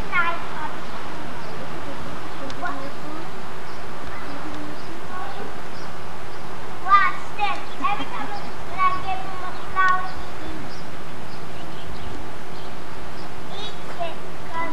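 A young woman talks nearby in a high, playful voice.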